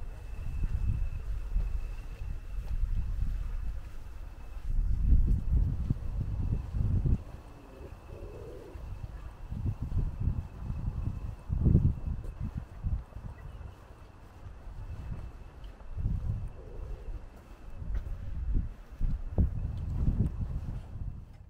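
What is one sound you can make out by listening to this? Wind gusts rumble against the microphone.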